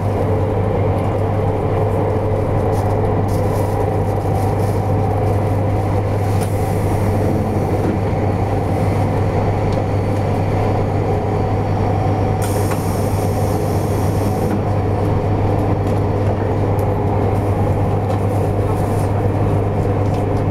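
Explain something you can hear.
A train hums and rumbles steadily from inside a carriage.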